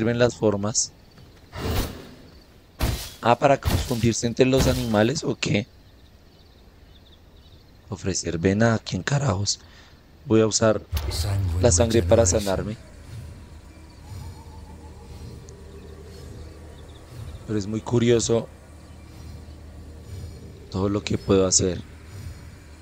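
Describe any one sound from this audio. A young man talks with animation into a close headset microphone, in bursts with pauses.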